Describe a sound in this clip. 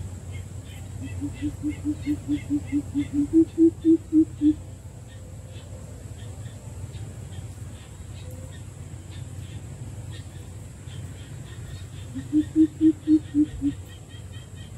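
A coucal gives a deep, hooting series of calls that speeds up and grows louder.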